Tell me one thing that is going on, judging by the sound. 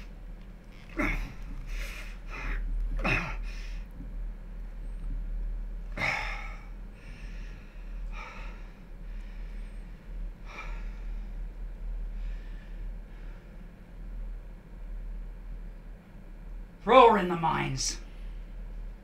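A middle-aged man speaks in a low, grave voice.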